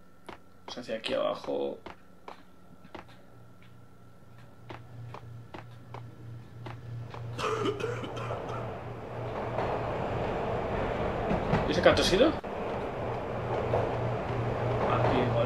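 Quick footsteps echo on a hard floor.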